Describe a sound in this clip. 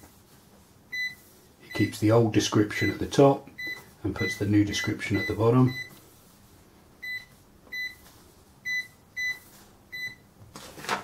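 A cash register gives a short, high beep with each key press.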